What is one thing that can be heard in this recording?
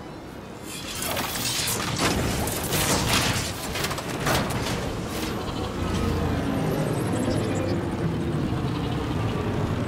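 A hovering vehicle's engine hums and roars steadily.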